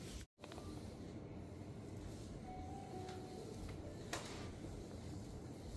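Hands rub and knead oiled skin with soft, slick strokes.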